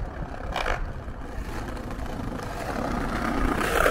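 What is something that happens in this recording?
Footsteps tap faintly on paving stones nearby.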